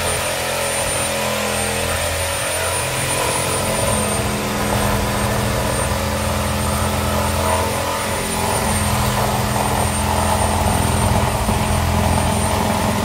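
A handheld power tool whirs steadily, its hum rising and falling slightly.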